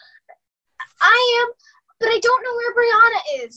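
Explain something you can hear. A teenage girl sings over an online call.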